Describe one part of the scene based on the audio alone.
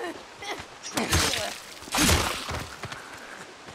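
A knife strikes flesh with a heavy thud during a brief struggle.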